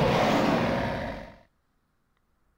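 A monster lets out a loud, harsh roar that quickly fades away.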